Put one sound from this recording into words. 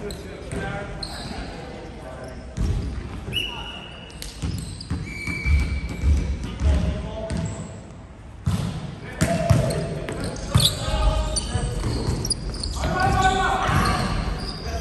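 A volleyball is struck with hands and thumps in an echoing gym hall.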